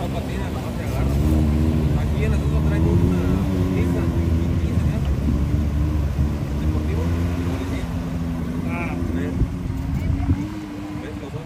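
An off-road buggy's engine roars loudly as the buggy plows through the water.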